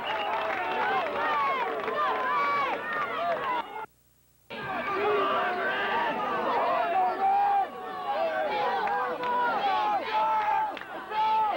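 A large outdoor crowd cheers and shouts.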